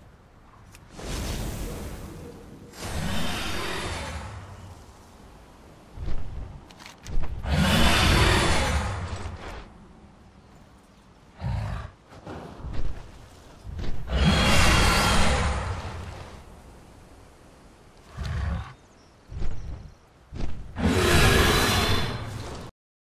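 A large dragon's wings beat with heavy whooshing gusts.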